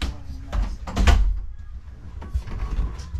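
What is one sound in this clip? A door latch clicks as a handle turns.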